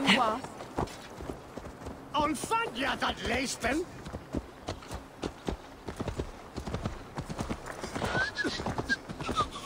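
A horse's hooves clop steadily on a dirt path.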